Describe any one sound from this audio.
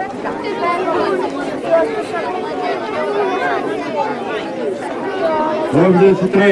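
A crowd of men and women chatters outdoors, with many voices overlapping.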